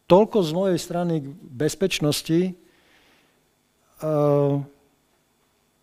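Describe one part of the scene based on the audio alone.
A man speaks into a microphone in a calm, measured voice.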